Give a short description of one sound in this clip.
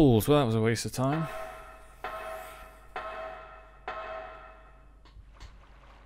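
Boots clang on metal ladder rungs in a slow rhythm.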